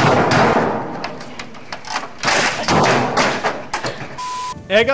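A man slams a keyboard hard against a computer with loud banging thuds.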